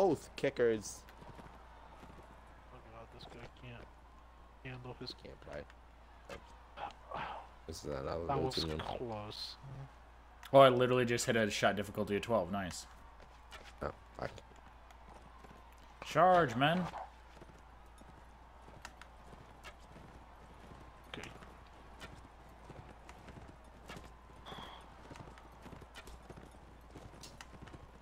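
Horses' hooves thud as horses gallop nearby.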